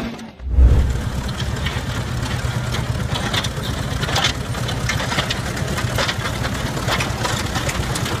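An old tractor engine chugs and rumbles close by.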